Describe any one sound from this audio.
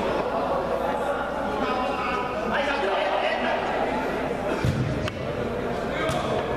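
Young men shout and call out across a large echoing indoor hall.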